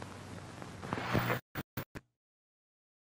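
Television static hisses and crackles in short bursts.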